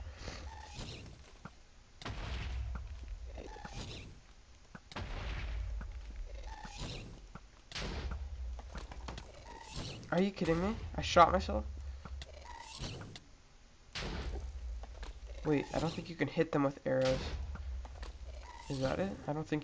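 Arrows are shot from a bow again and again.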